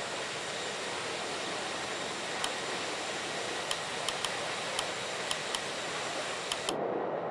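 Jet engines roar steadily.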